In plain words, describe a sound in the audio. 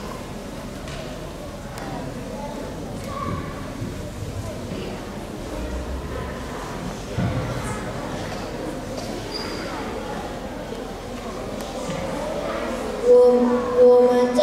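Many children chatter softly in a large echoing hall.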